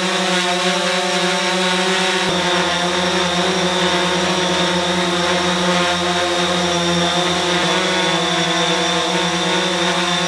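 A drone's propellers buzz with a steady, loud whine as it hovers close by.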